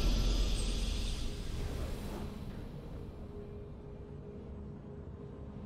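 Triumphant game victory music swells and then slowly fades.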